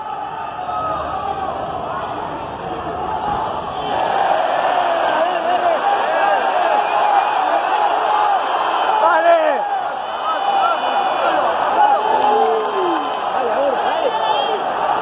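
A large crowd cheers and shouts in a big echoing arena, growing louder after a few seconds.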